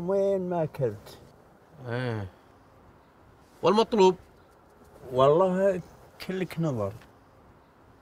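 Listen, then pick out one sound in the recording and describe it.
An elderly man speaks calmly up close.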